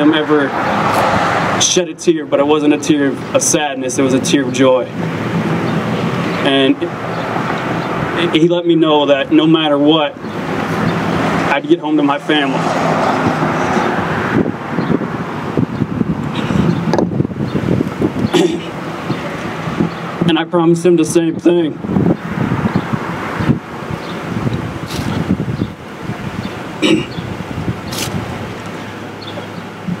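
A young man speaks steadily into a microphone outdoors, heard through a loudspeaker.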